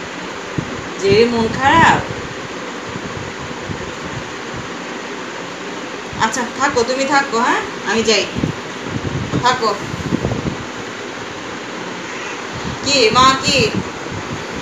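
A young woman speaks softly and affectionately, close by.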